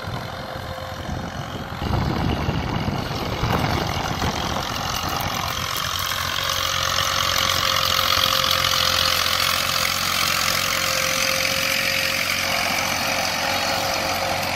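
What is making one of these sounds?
A disc harrow scrapes and churns through dry soil.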